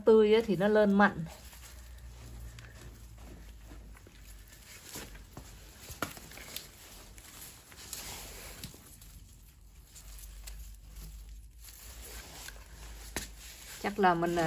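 Gloved hands scrape and press into loose soil, rustling and crumbling.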